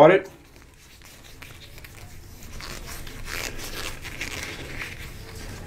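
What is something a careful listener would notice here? Fingers rub and rustle against soft fabric close up.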